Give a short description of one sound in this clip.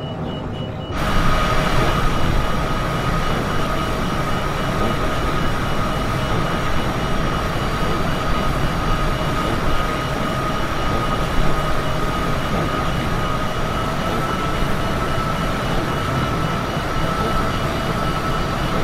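Jet engines roar with a steady high whine.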